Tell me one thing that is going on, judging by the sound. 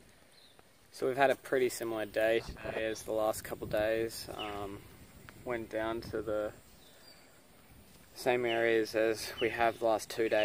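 A young man speaks calmly, close to the microphone.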